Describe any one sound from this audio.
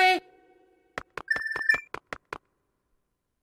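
Short game blips and chimes count up a score.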